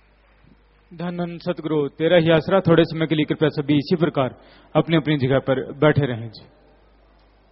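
A man chants loudly and close by.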